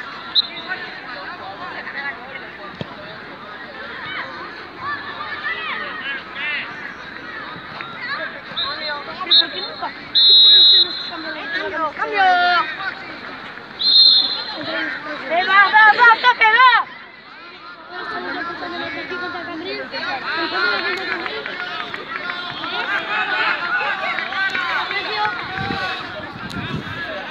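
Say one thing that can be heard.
Young players and spectators shout and call out across an open pitch.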